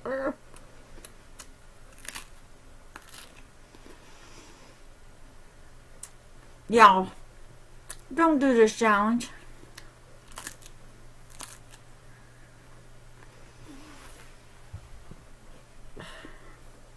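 A woman chews and crunches raw broccoli.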